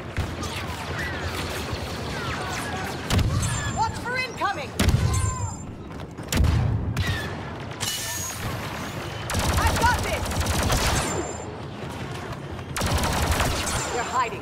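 Blaster shots zap in rapid bursts.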